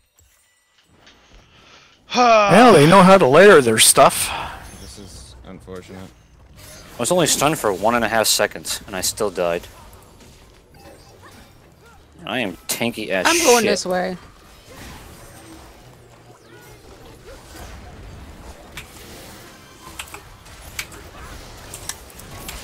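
Video game spell effects whoosh and crackle during a battle.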